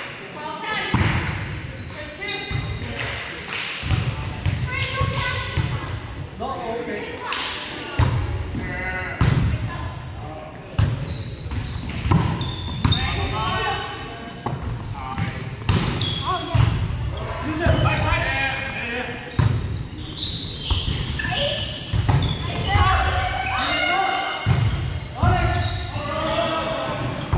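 A volleyball is struck with a slap of hands and forearms.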